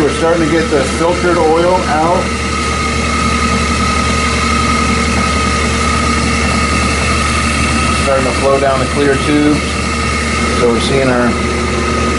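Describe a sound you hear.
An electric pump motor hums steadily.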